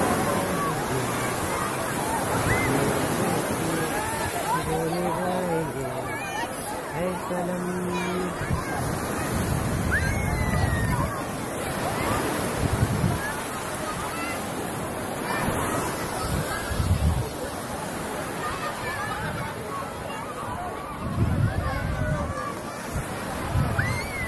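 Waves wash onto the shore steadily.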